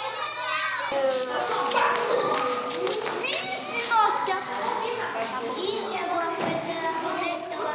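A young girl speaks softly up close.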